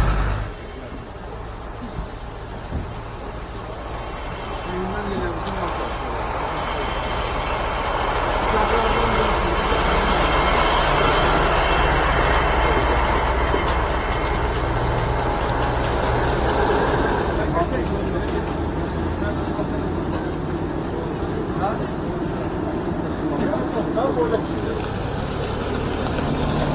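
Heavy truck engines rumble as trucks drive slowly past.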